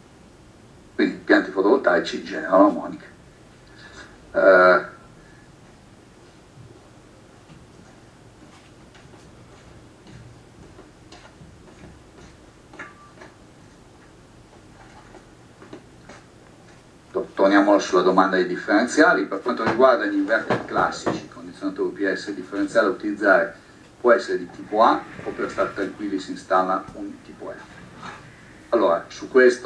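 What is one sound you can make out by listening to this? A man speaks calmly over an online call, heard through a loudspeaker.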